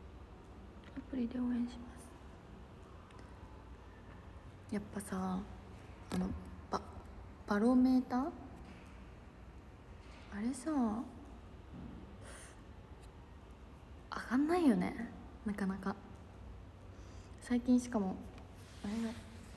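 A young woman speaks softly and casually close to a phone microphone, in short bursts.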